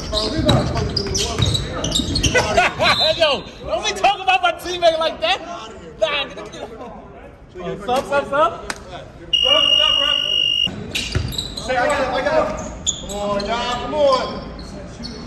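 Men shout and call out to each other in a large echoing gym.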